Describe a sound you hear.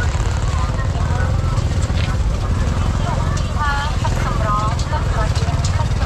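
Motorbike engines putter nearby.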